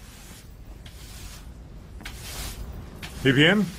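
A broom sweeps across a hard floor with soft brushing strokes.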